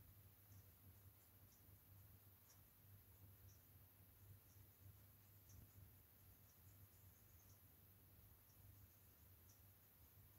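A small brush strokes softly and faintly across a surface.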